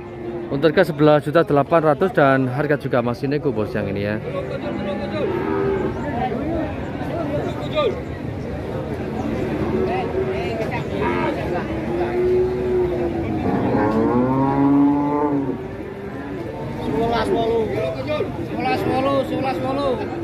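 A crowd of men chatters all around, outdoors.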